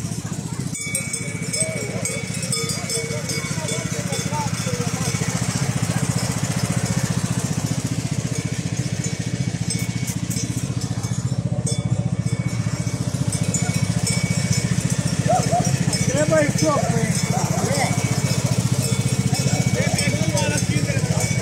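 A small engine hums steadily close by.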